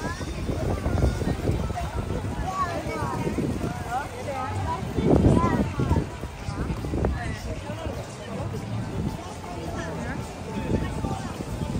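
A crowd of men and women chatters nearby outdoors.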